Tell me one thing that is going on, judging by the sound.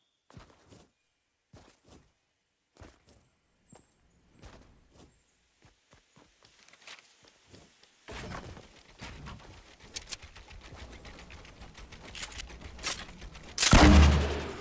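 Footsteps patter quickly on wooden floors.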